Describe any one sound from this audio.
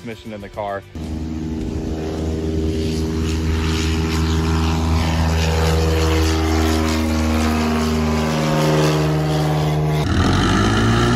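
A small propeller plane's engine drones loudly as it flies low overhead.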